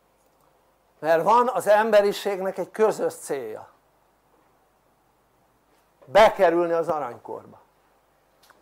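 An elderly man speaks calmly and clearly, with pauses between phrases.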